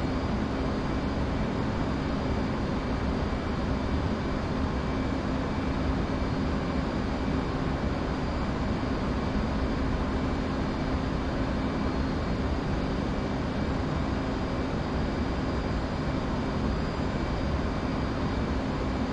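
A jet engine roars steadily with a low hum.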